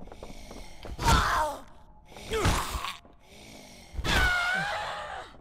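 Heavy blows strike a body with loud thuds.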